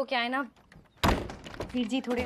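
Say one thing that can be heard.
A wooden door thumps as it is pushed.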